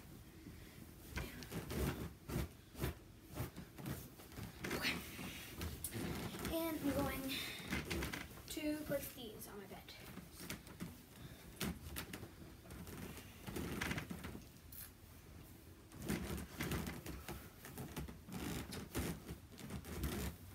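A sheet rustles and flaps as it is shaken out and spread.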